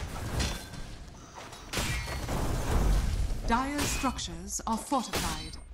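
Magic blasts and weapon hits crackle and burst in a game battle.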